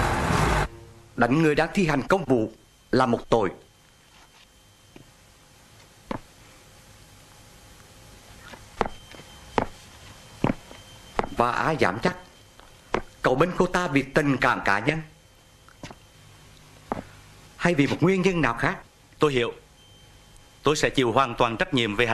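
A man speaks calmly and firmly nearby, in short phrases.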